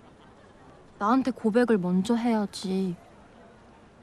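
A young woman speaks up close, with animation.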